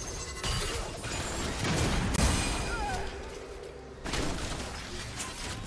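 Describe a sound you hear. Weapon strikes clash repeatedly.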